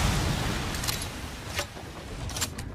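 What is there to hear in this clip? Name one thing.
A revolver clicks as it is reloaded.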